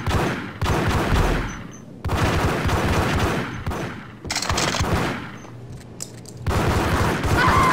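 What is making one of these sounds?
Pistols fire rapid bursts of gunshots that echo loudly.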